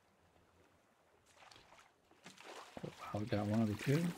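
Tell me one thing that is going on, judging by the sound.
A fishing line splashes into the water.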